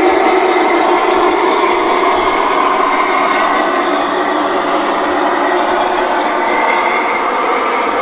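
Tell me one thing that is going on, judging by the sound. A model locomotive hums and whirs steadily as it rolls along the track.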